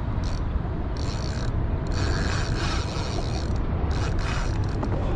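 Water laps and splashes gently against a small boat's hull.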